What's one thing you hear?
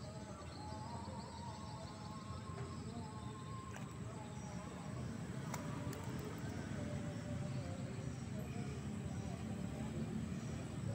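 A net pole splashes lightly in river water.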